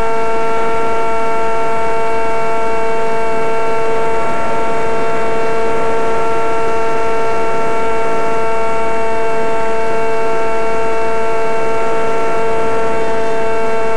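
A small propeller motor whines steadily at a high pitch.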